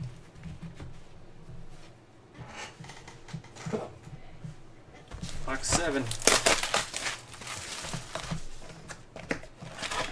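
Cardboard boxes shuffle and rustle on a table.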